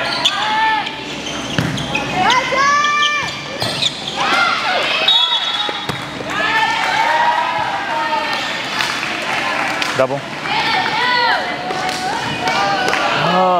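Young women shout and cheer loudly in a large echoing hall.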